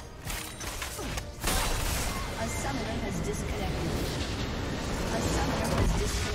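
Game spells and weapons clash and blast loudly in a fight.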